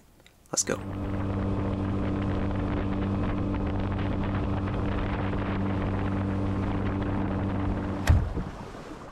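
A boat motor drones steadily while cruising over water, then cuts off.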